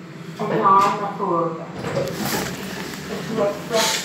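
Lift doors slide open.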